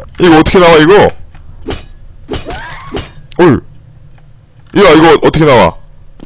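Footsteps clatter on a metal floor.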